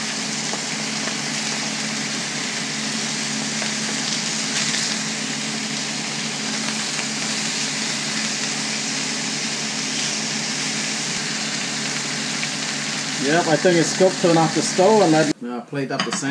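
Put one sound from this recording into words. Fish sizzles steadily in a hot frying pan.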